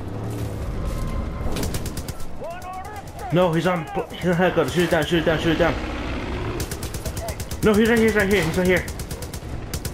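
A helicopter's rotor thumps nearby.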